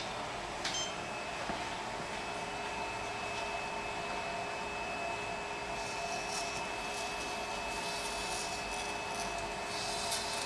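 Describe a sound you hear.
A small robot's motors whine steadily as it moves.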